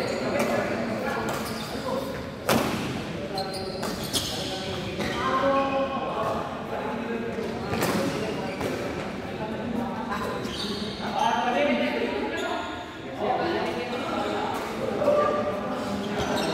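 Several young men talk and call out across a large echoing hall.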